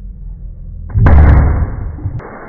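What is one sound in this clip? A champagne cork pops loudly.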